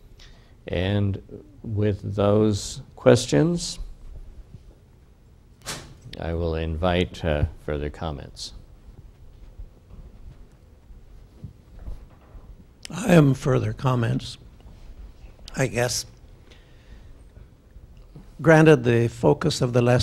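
An older man speaks calmly to an audience.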